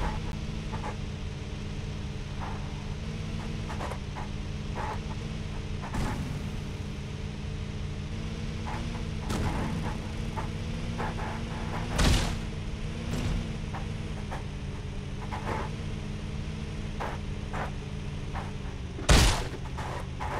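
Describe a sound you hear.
Truck tyres bump and thud over rocky dirt.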